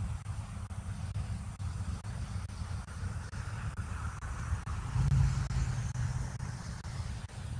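Wind blows over the microphone outdoors with a low, steady rumble.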